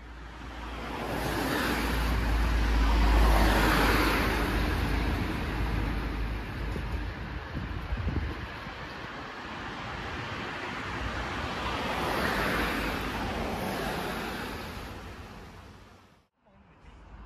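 Cars drive past close by on a wet road, their tyres hissing.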